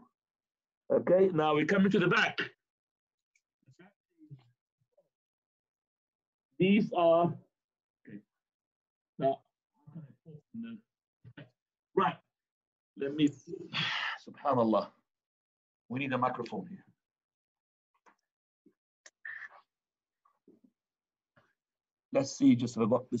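A man recites prayers aloud in short spoken phrases, close by.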